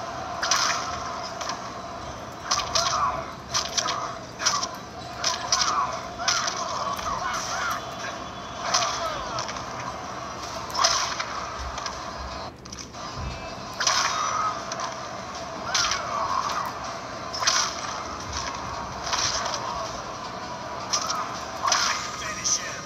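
Punches and kicks land with heavy thuds in a video game fight, heard from a loudspeaker.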